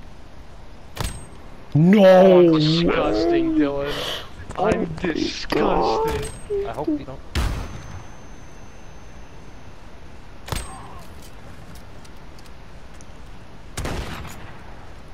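Gunshots crack sharply, a few times with pauses between.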